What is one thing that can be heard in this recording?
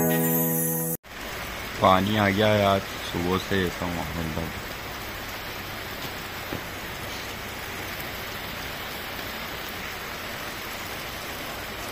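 Steady rain falls and patters outdoors.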